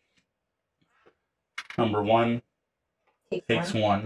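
Plastic game pieces tap softly on a board.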